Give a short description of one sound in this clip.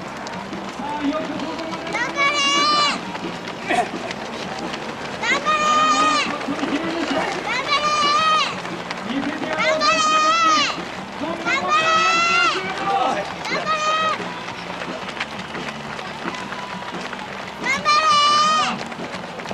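Many runners' shoes patter on a paved road.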